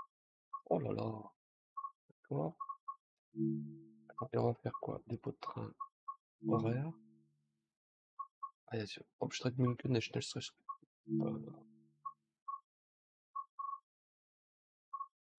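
Short electronic beeps sound as menu selections change.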